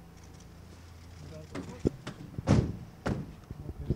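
A van door slams shut.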